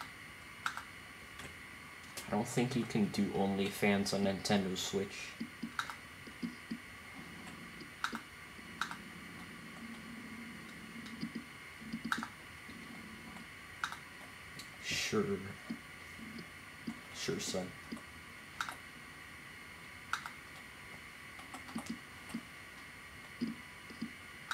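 Soft interface clicks tick now and then.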